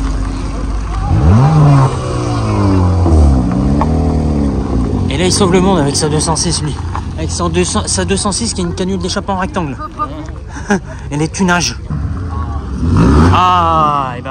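A sports car engine revs loudly and drives off close by.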